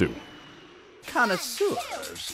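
A young woman exclaims with excitement.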